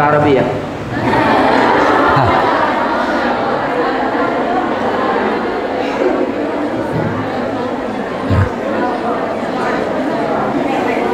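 A crowd of young women chatter together.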